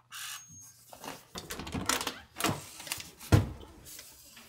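A door latch clicks and a door swings open.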